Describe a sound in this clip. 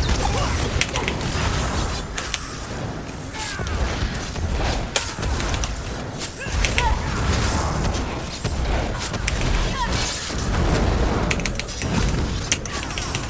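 Heavy thuds of combat boom and rumble.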